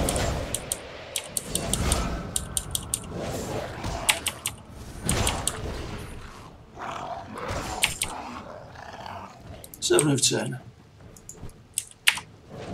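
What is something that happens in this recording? Magic spells crackle and strike in quick bursts.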